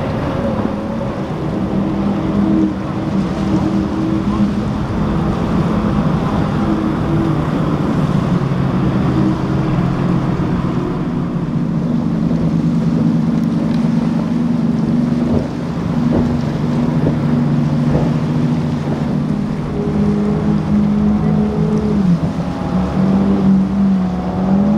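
Water sprays and hisses against a speeding boat's hull.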